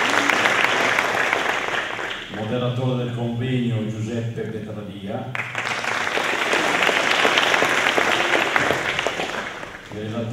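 An audience claps and applauds in a large hall.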